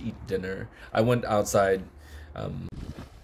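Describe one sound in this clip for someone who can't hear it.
A man speaks with animation close to a microphone.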